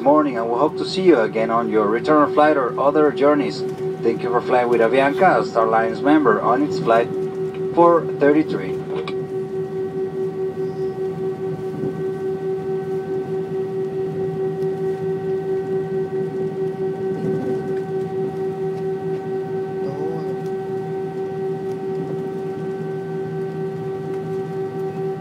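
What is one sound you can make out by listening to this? A jet engine hums steadily as an airliner taxis.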